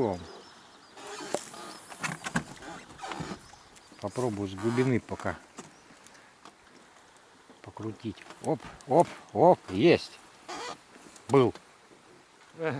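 Calm water laps softly against a small boat.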